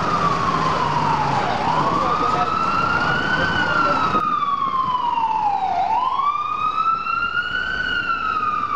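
An ambulance siren wails nearby, rising and falling slowly.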